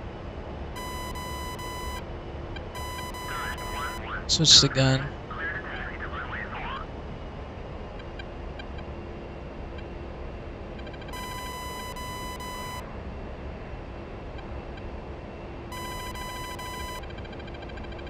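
A cockpit warning tone beeps in short bursts.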